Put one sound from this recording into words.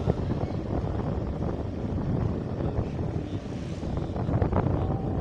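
Wind buffets a microphone on a moving motorcycle.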